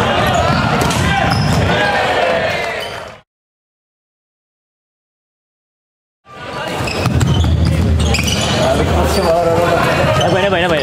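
Floorball sticks clack against a plastic ball in a large echoing hall.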